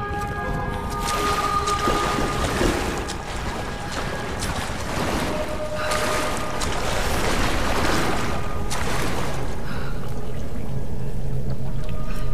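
Water splashes as a person wades through it.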